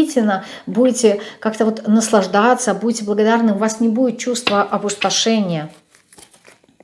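A woman speaks calmly and expressively close to a microphone.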